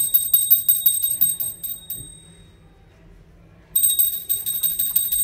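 A small bell rings rapidly with bright, quick strokes.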